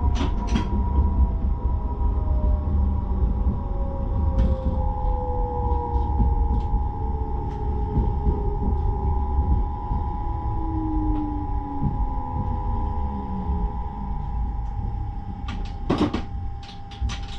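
A train rumbles steadily along the rails, its motor whining and slowly falling in pitch.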